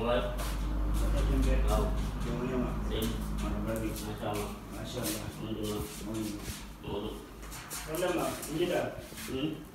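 A young man talks nearby in a conversational tone.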